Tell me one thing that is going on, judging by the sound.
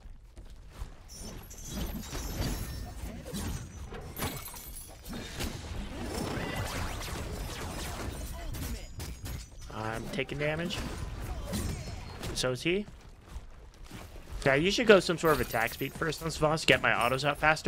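Game spell effects whoosh and crackle during combat.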